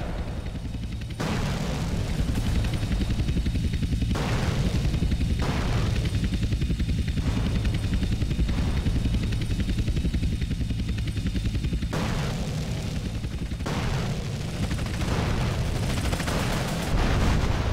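Helicopter rotors thump steadily overhead.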